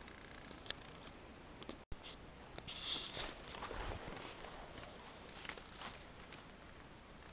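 Leaves and grass rustle as someone pushes through undergrowth.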